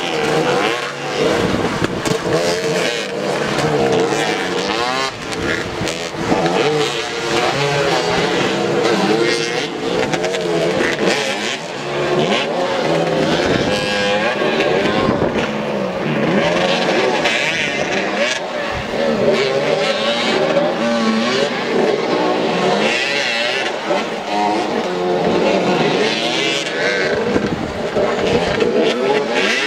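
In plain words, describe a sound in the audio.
Several motorcycle engines rev and whine up and down close by.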